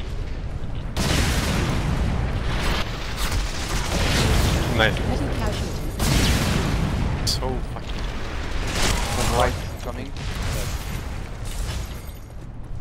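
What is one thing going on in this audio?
Gunfire bursts rapidly and loudly, with bullets striking walls.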